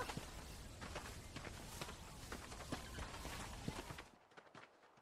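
Several men's footsteps crunch through dry grass.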